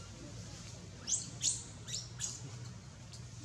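A baby monkey squeaks shrilly several times, close by.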